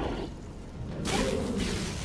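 An electric crackle zaps and sizzles.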